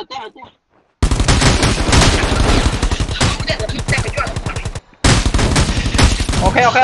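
Rapid gunfire rattles in a video game.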